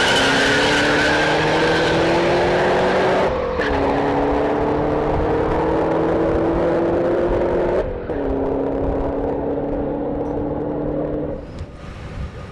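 A car engine roars at full throttle, rising in pitch and dropping briefly with each gear change.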